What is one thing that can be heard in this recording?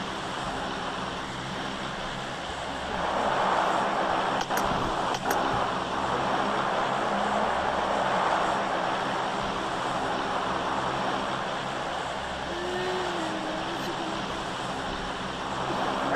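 An airplane engine drones steadily overhead.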